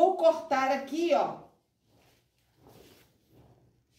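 Fabric rustles softly as it is lifted and moved.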